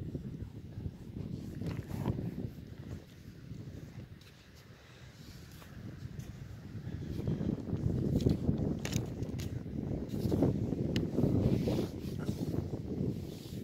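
A horse's coat brushes and rustles right against the microphone.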